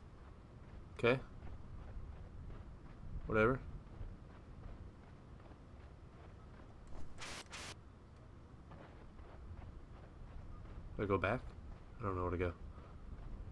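A young man talks into a microphone in short bursts.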